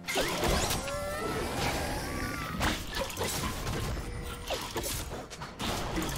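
Sharp hits and blasts thump again and again.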